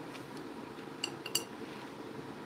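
A ceramic tile clicks lightly against a hard surface.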